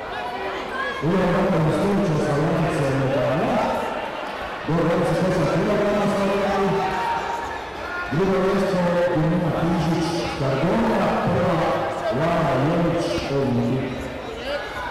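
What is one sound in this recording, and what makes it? Young fighters shout loudly as they spar.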